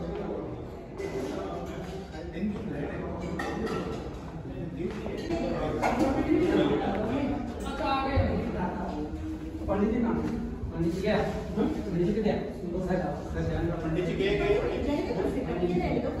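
Men and women talk quietly nearby.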